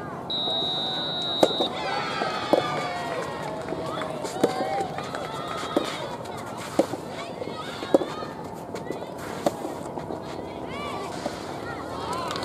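Tennis rackets hit a ball back and forth with sharp pops.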